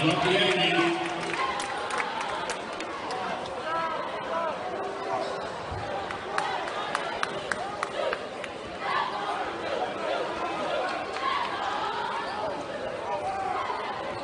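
A basketball bounces on a wooden floor.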